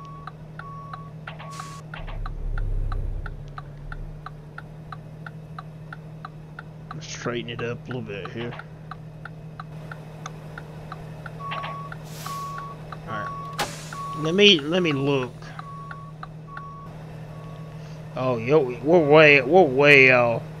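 A truck's reversing alarm beeps in a steady rhythm.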